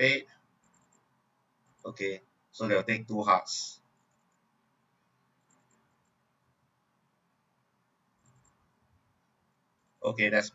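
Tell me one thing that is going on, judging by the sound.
A man speaks calmly in short bursts, close to a microphone.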